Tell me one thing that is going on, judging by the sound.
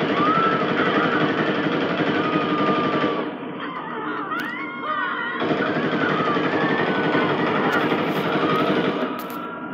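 Gunshots fire in a video game through a television speaker.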